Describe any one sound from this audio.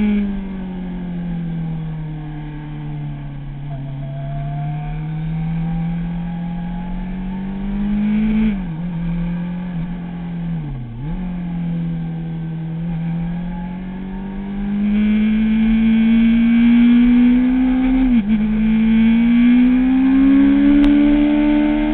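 A motorcycle engine roars steadily close by, its pitch rising and dipping as the rider shifts gears.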